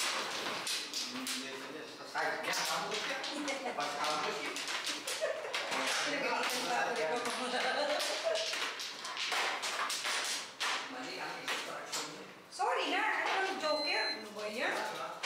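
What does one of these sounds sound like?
Mahjong tiles clack against each other and the table.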